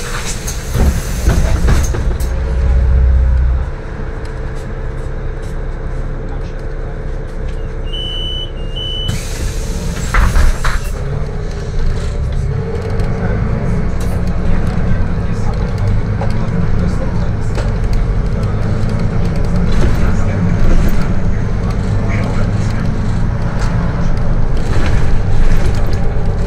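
A bus engine rumbles low and steadily from inside the bus.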